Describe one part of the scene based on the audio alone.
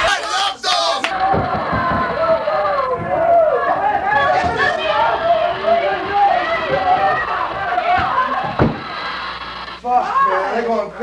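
Young women shriek and shout excitedly close by.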